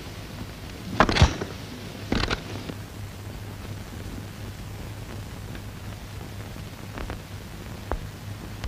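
Briefcase latches snap open with sharp clicks.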